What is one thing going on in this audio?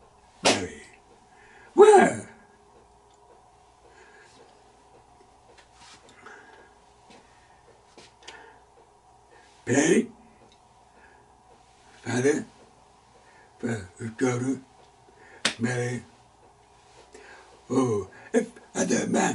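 An elderly man speaks with animation close to a microphone, in short bursts with pauses.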